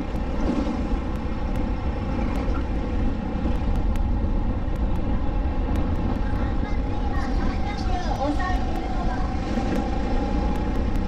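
A four-stroke go-kart engine drones at full throttle up close.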